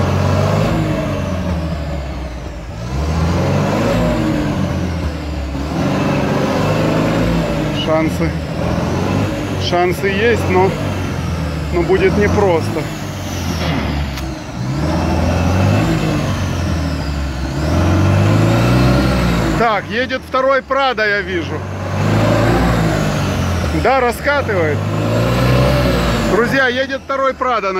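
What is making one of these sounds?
An engine roars and revs up and down.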